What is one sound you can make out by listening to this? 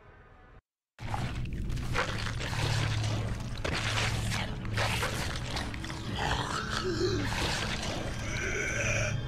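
A creature chews and tears wetly at flesh.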